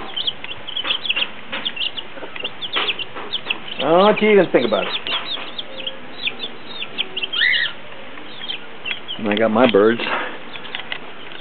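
Chicks peep in quick, high chirps.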